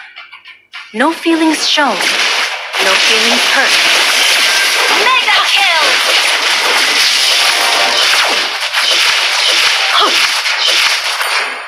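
Video game battle effects clash and burst loudly.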